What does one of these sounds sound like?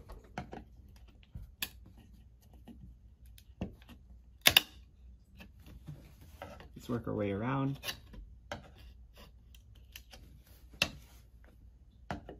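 A screwdriver clicks and knocks against a wall fitting.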